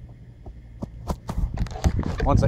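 A shoe scuffs on artificial grass close by.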